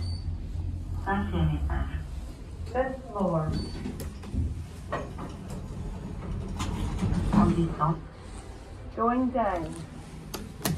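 An elevator chime sounds a few times.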